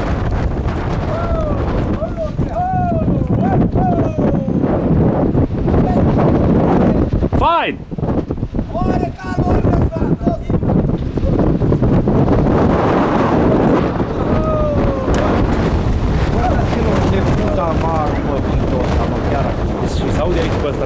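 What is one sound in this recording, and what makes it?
A man calls out to the horses from nearby, outdoors.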